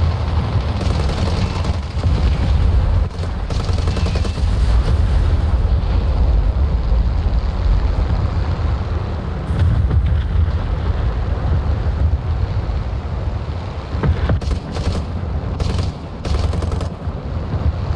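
Machine guns fire in rattling bursts.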